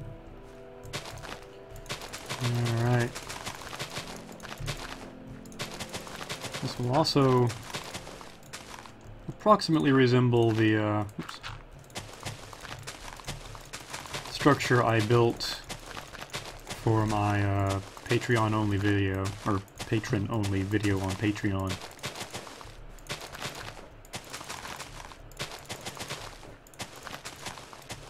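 Blocks of dirt crunch as they are dug out, over and over in quick succession.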